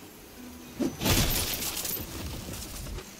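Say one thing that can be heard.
A magical whoosh rings out with a bright sparkle.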